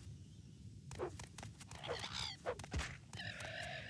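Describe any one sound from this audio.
A blade strikes a creature with sharp thuds.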